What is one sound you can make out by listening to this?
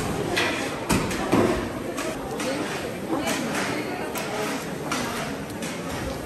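A knife slices through raw meat with soft wet sounds.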